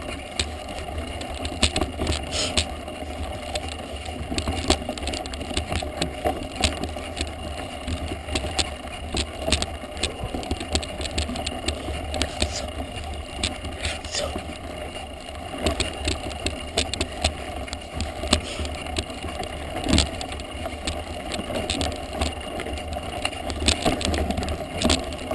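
A bike frame rattles and knocks over bumps and loose stones.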